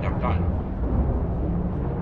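Electricity crackles and zaps sharply underwater.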